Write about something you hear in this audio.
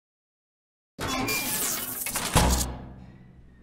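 A heavy metal door rumbles open.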